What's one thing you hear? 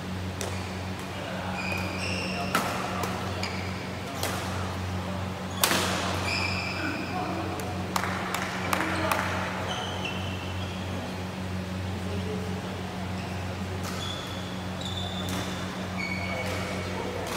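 Badminton rackets smack a shuttlecock back and forth in a large echoing hall.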